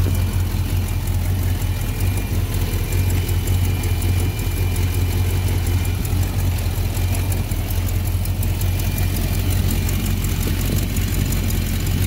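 An engine idles steadily with a deep, lumpy rumble close by.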